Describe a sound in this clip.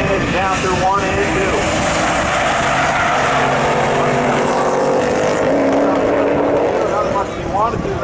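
Car engines roar loudly.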